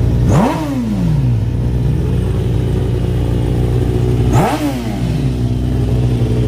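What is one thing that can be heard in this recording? A motorcycle engine revs sharply and drops back.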